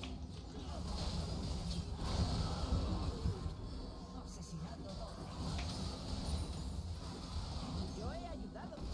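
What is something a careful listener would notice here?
Magic blasts and hits crackle and thump in a fast battle.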